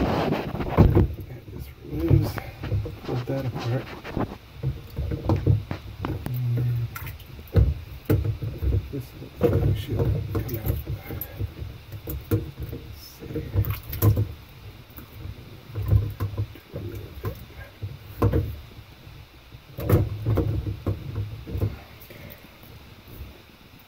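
Plastic parts knock, click and rattle.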